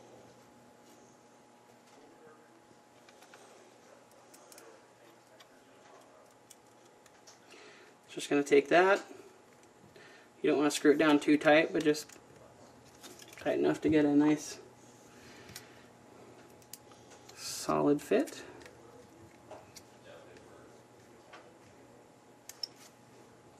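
Small metal and plastic parts click and tap as they are handled.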